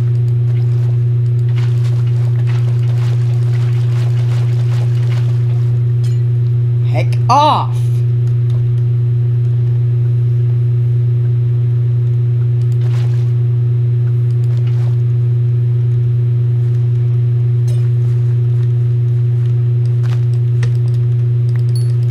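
Blocks are placed with soft taps.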